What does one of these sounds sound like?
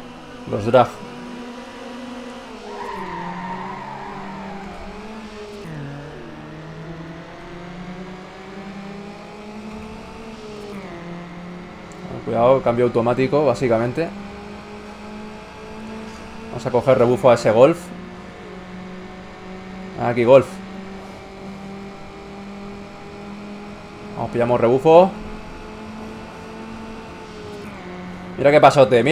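A car engine roars steadily, rising in pitch and dropping at each gear change.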